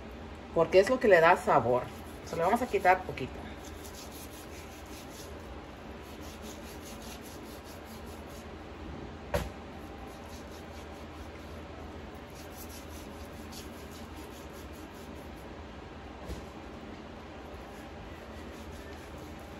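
A knife scrapes and slices through raw meat.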